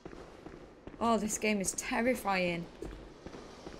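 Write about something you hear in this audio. A young woman speaks briefly and with animation into a microphone close by.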